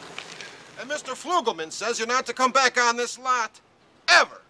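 A middle-aged man speaks gruffly.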